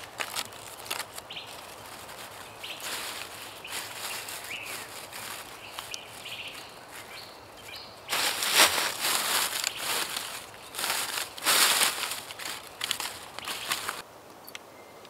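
Dry leaves rustle as hands move through them.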